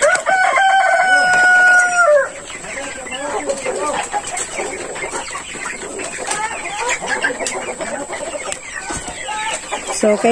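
Many chickens cluck and cheep in the background.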